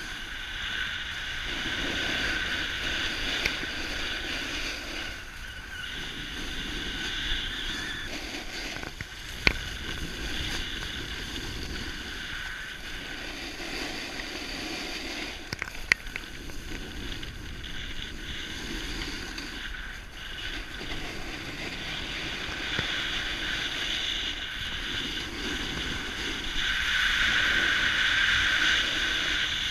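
Skis scrape and hiss over hard snow.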